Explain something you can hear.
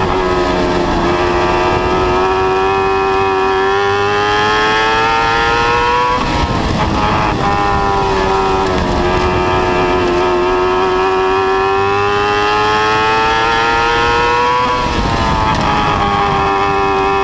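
Tyres and dirt spray against the car's body.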